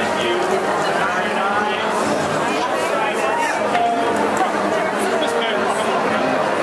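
A large crowd of men and women cheers and chatters loudly in an echoing hall.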